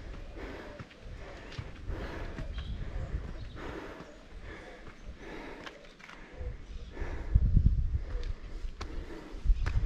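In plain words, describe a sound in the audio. Footsteps crunch steadily on a dirt and stone path outdoors.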